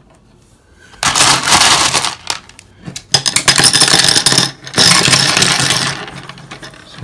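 Pebbles rattle and clatter as they are dropped into a wire mesh cage.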